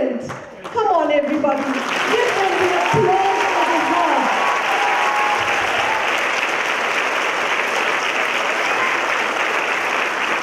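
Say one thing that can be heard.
A crowd applauds and cheers loudly in a large hall.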